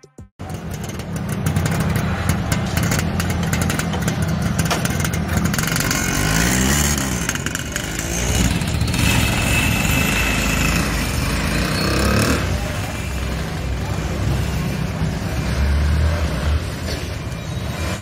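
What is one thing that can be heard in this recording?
A diesel engine chugs loudly nearby.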